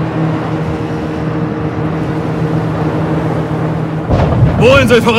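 Boat engines drone steadily over rough water.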